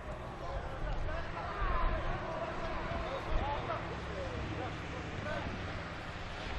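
Men call out to each other across an open field, some way off.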